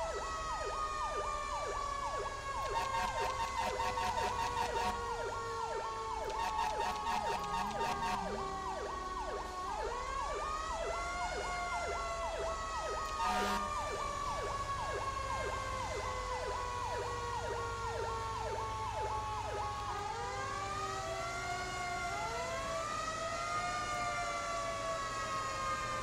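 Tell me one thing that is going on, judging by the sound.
A second siren wails, rising and falling slowly.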